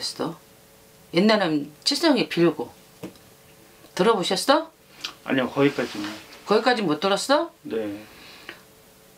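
A middle-aged woman speaks animatedly in short bursts, close to a microphone.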